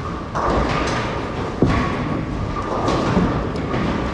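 A bowling ball thuds onto a wooden lane and rumbles away.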